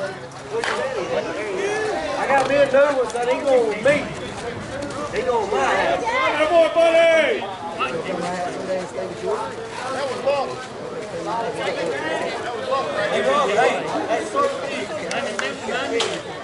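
Several men talk and call out across an open field outdoors.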